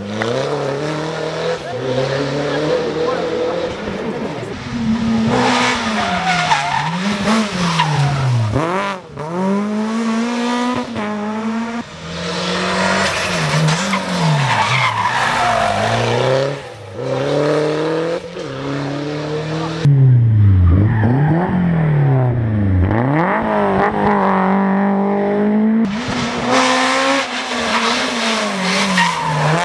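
A rally car's exhaust pops and crackles between gear changes.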